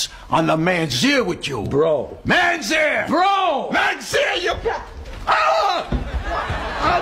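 An elderly man shouts with animation.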